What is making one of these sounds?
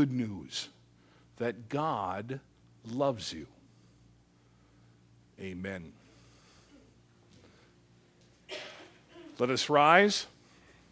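An elderly man speaks with animation, with pauses between phrases.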